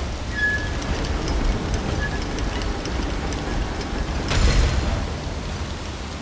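A metal valve wheel turns and clanks.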